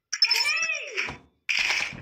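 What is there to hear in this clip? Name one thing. A grenade is thrown with a swish.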